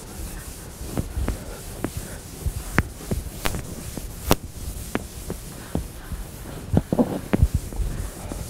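An eraser knocks against a chalkboard in short taps.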